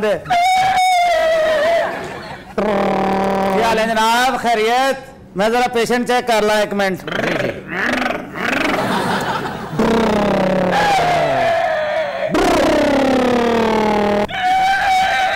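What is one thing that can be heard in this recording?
A man sings loudly in a wailing voice through a microphone.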